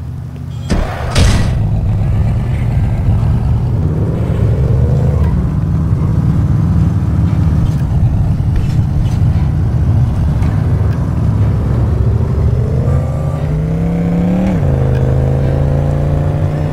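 A car engine rumbles and revs up and down.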